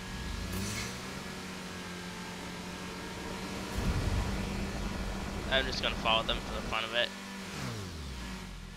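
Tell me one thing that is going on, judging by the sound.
A car engine hums steadily at speed, then winds down as the car slows.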